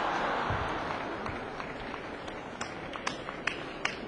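A crowd cheers loudly and then quiets down.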